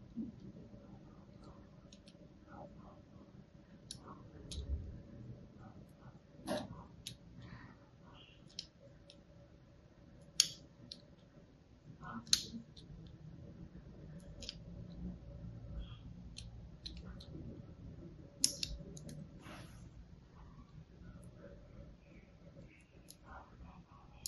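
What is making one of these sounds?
A blade scrapes and cuts into a bar of soap with soft crisp scratches.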